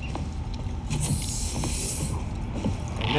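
A heavy sliding door hisses open.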